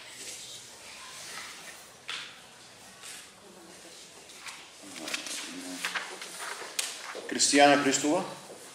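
A small crowd chatters in a large echoing hall.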